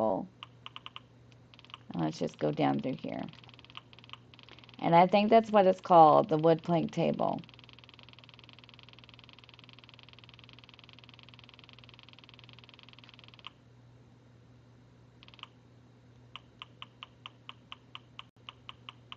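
Soft menu ticks click rapidly as a list scrolls.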